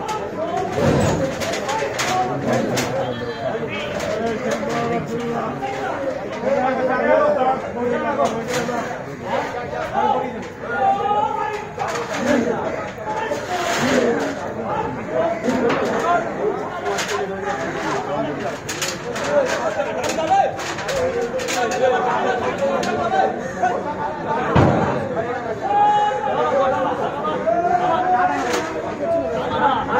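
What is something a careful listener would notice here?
A crowd of men talk and call out close by, outdoors.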